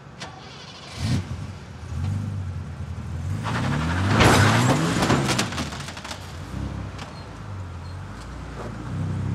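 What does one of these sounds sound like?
A car engine starts and idles with a low rumble.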